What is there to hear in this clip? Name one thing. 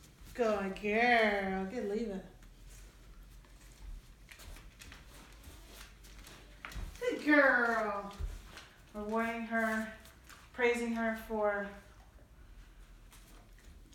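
A dog's claws click and patter on a wooden floor.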